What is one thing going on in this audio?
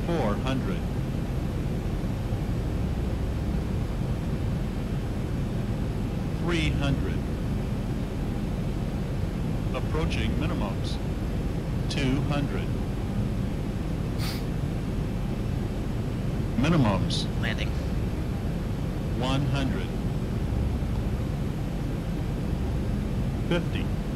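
Jet engines drone steadily in a low rumble.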